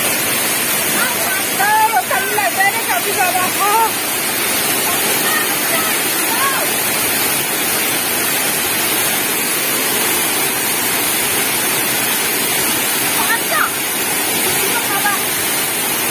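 Young people shout and call out playfully over the rushing water.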